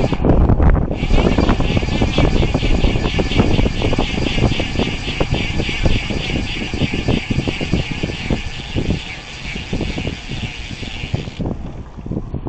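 A bicycle freewheel buzzes with rapid ticking while coasting.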